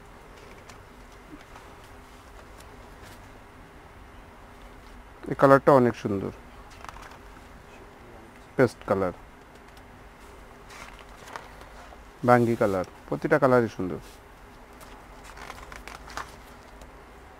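Glossy catalogue pages flip and rustle.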